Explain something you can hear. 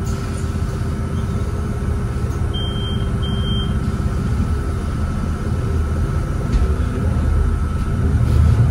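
A diesel city bus engine drones from inside while driving.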